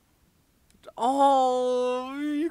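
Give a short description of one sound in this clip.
A young man sings out a long, drawn-out note close to a microphone.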